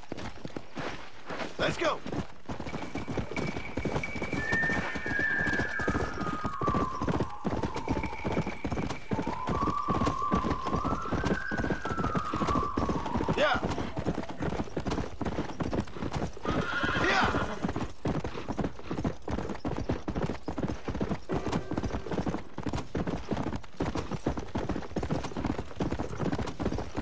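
Hooves of a galloping horse pound rapidly on a dirt track.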